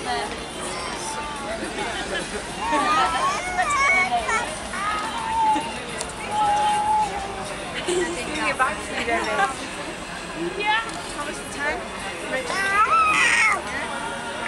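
Many people chatter at tables outdoors.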